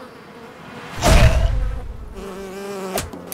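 A heavy rock slams down onto the ground with a loud thud.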